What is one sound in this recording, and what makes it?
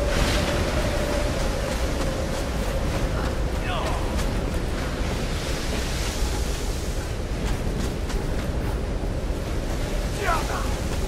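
Water rushes steadily.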